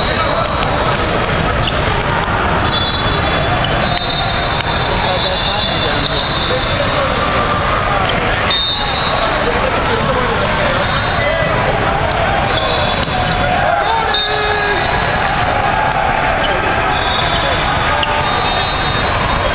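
Many voices echo through a large hall.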